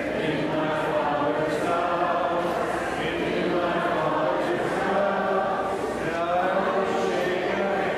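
A large crowd of men and women chatters and murmurs in a large echoing hall.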